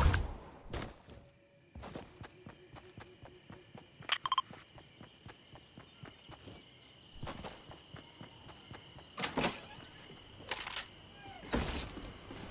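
Footsteps patter on grass and pavement.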